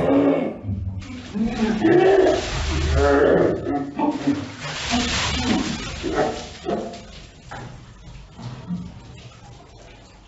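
Water splashes from a bucket onto a young man.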